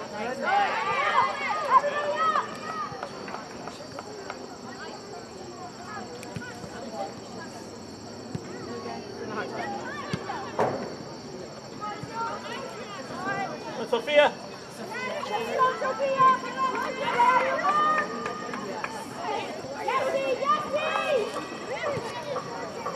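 Young women shout to each other outdoors across an open field.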